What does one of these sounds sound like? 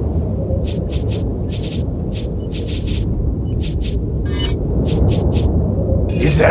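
Short electronic menu sounds tick repeatedly.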